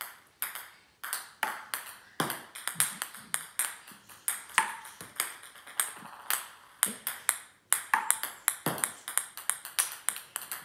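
A small paddle taps a ping-pong ball.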